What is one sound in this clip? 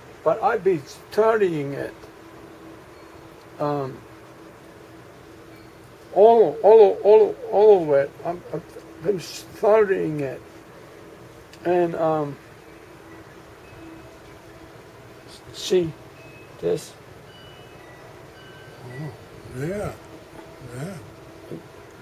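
An elderly man talks calmly close by, in short bursts.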